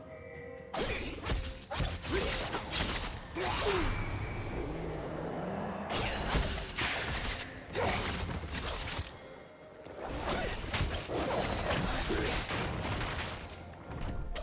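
Spell effects whoosh and crackle in quick bursts.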